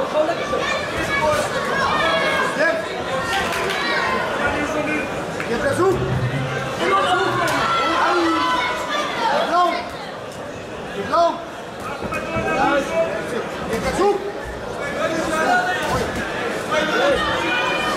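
A crowd in a large hall cheers and shouts.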